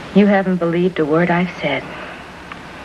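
A man speaks nearby in a lively, sing-song voice.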